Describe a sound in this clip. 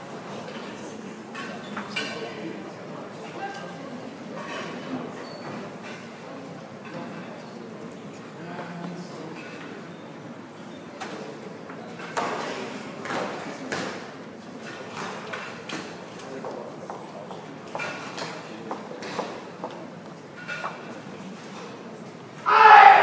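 Spectators murmur quietly in the background.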